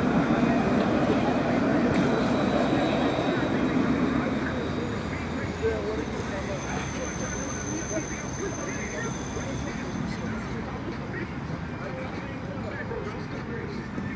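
Shoes scuff and shuffle on hard pavement.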